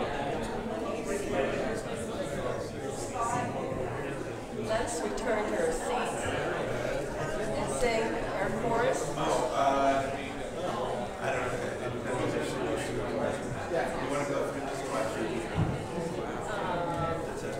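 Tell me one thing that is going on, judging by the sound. An elderly woman speaks calmly into a microphone over a loudspeaker in an echoing hall.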